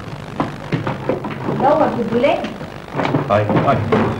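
A man rummages through a box.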